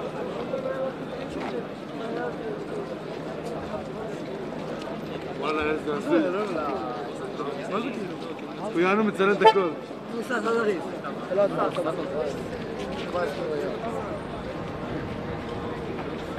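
A crowd of men sings together outdoors.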